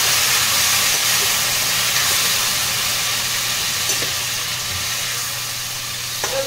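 A metal spatula scrapes against a pan.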